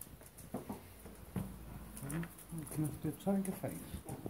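A dog's claws tap on a wooden floor.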